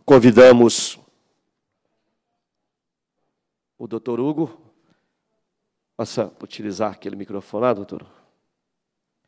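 A man speaks into a microphone over a loudspeaker in an echoing hall, in short bursts.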